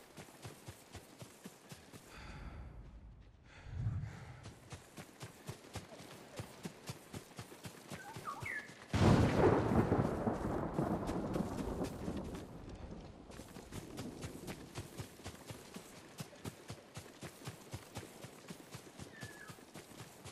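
Footsteps rustle quickly through tall dry grass.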